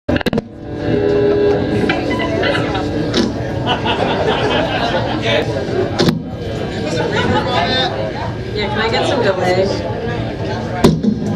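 A live rock band plays loudly in an echoing room.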